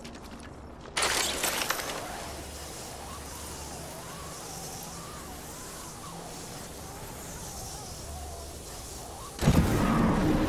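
A zipline hums and whirs as a character slides along a cable.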